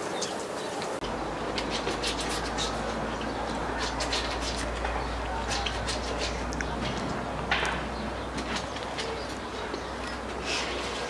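Water splashes as clothes are scrubbed in a tub.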